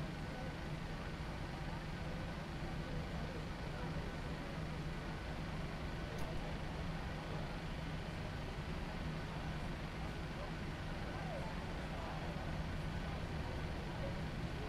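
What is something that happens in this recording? A jet aircraft's engines hum steadily at idle.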